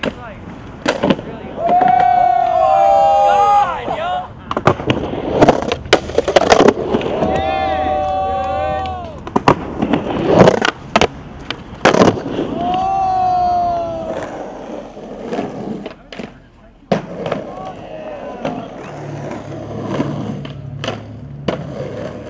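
A skateboard deck clacks against concrete.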